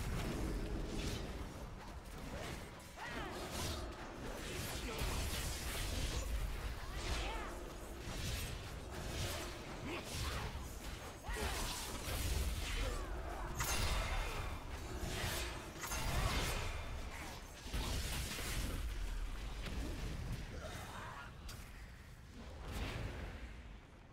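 Game spell effects whoosh, crackle and clash in a fast battle.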